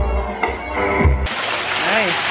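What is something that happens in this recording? A group of young women laugh and cheer.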